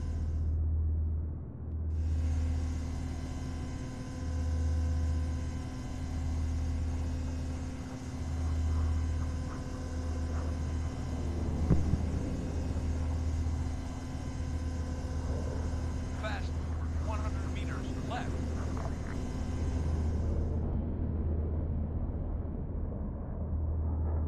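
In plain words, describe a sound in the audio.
An aircraft engine drones steadily with a slow, throbbing pulse.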